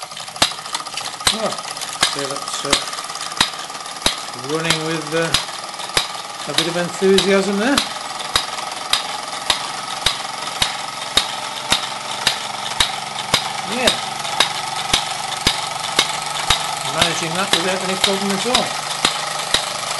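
A toy steam engine chugs with a steady, regular clicking beat.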